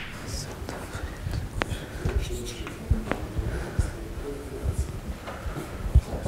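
A young man lectures calmly.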